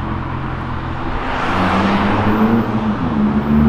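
A car rushes past with a whoosh.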